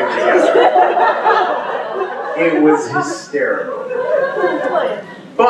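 A man speaks with animation into a microphone, heard through a loudspeaker in a large room.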